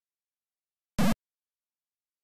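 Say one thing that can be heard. A short electronic game blip sounds once.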